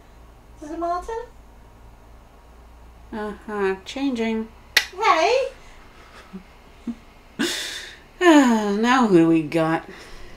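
A young woman speaks close by with lively, sing-song expression.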